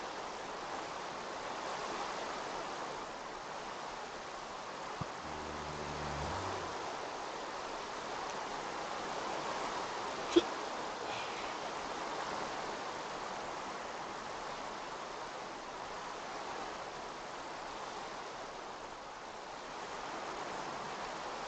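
Footsteps crunch over grass and leaves.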